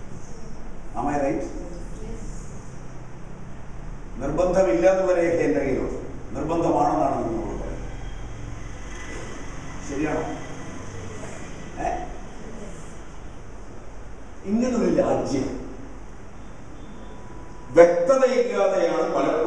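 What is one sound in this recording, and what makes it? An elderly man speaks with emphasis through a microphone, in bursts with pauses, in an echoing room.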